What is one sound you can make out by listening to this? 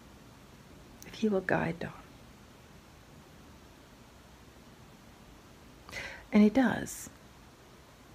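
A middle-aged woman speaks briefly and quietly, close by.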